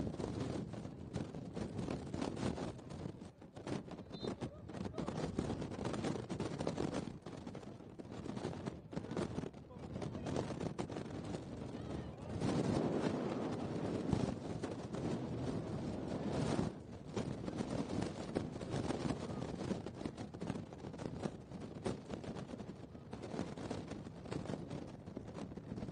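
Wind blows across an open field outdoors.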